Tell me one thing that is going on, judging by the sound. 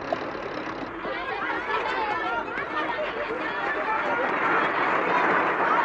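Heavy trucks rumble and roar through mud.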